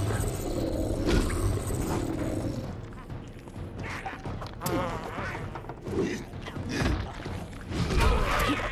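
Heavy blows thud and clash.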